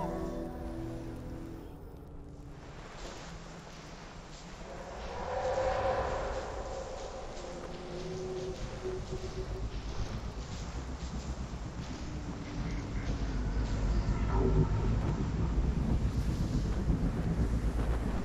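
Skis hiss and scrape across snow.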